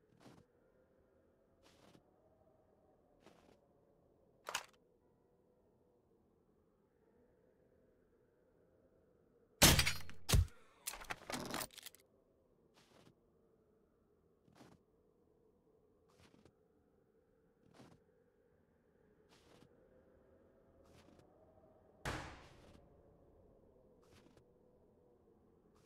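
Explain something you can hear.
Footsteps thud at a walking pace.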